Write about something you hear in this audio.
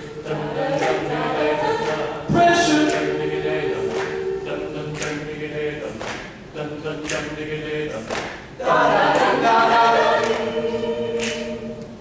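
A man sings the lead into a microphone.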